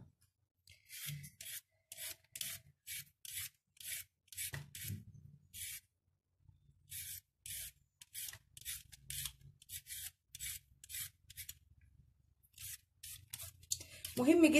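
A peeler scrapes along a carrot in quick, regular strokes.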